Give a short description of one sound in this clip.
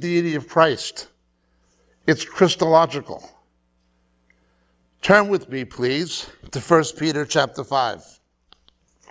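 A middle-aged man speaks calmly into a clip-on microphone, in pauses.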